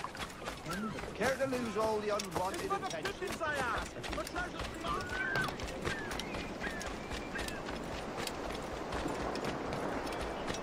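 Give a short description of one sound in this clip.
Quick footsteps run over packed ground.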